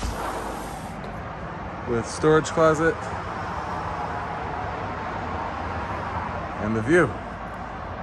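Traffic hums steadily on a road in the distance.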